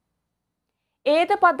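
A young woman reads out calmly.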